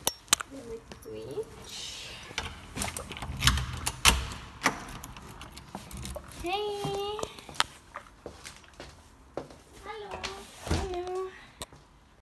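Knocks and bumps thud against the microphone.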